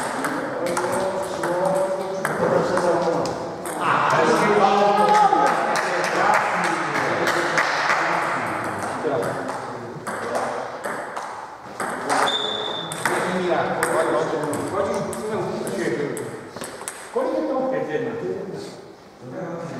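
Table tennis balls click sharply back and forth on paddles and tables.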